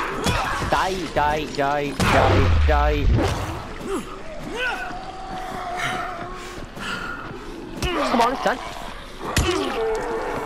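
A weapon strikes a body with heavy thuds.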